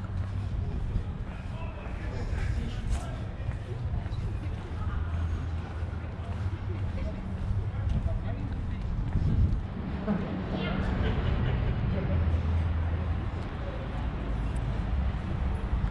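Footsteps tap on a paved street.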